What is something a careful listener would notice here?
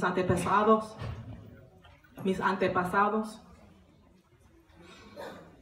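A woman sings into a microphone, heard through a loudspeaker in a room.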